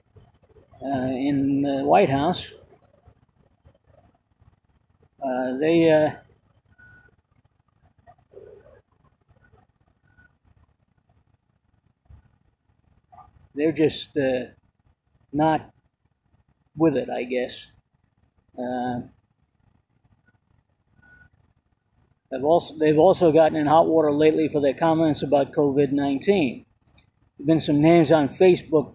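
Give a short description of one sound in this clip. An elderly man speaks calmly and close up, with pauses.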